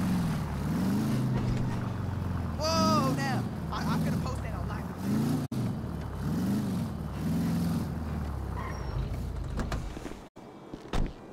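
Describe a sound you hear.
A car engine hums and revs as a car drives slowly.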